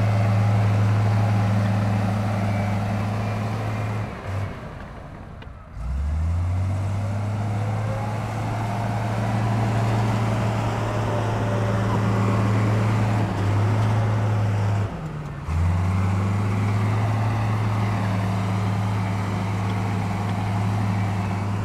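Bulldozer tracks clank and squeak over dirt.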